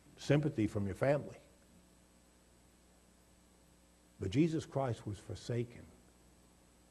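An older man speaks emphatically into a microphone, in short bursts with pauses.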